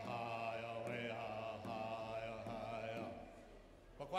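An elderly man sings loudly into a microphone.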